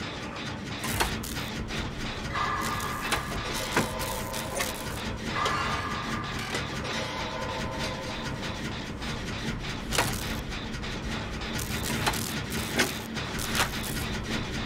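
Sharp metallic clicks and knocks ring out now and then.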